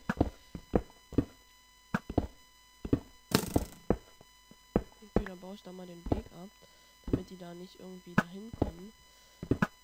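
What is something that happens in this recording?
Blocks break under a pickaxe in a video game.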